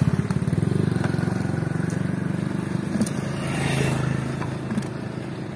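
Wet fish slide and slap out of a bucket into a box.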